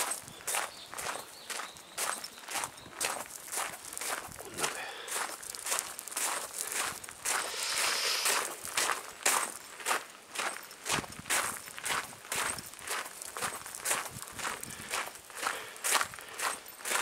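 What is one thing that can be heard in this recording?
Footsteps crunch steadily on gravel at a walking pace.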